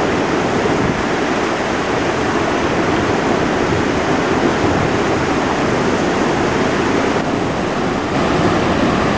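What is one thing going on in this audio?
A shallow river rushes over rocks and gravel in a concrete channel.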